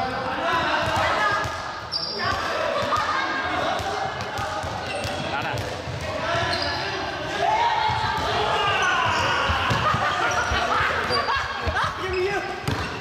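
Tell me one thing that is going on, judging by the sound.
Sneakers squeak and thump on a hard floor.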